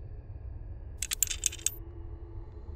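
A metal latch rattles and clicks open.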